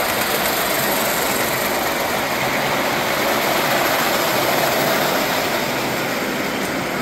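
A model train rumbles and clatters past on its track, then fades.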